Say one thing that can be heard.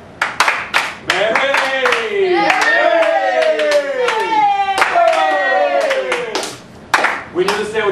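Several young people sing together in a lively chant.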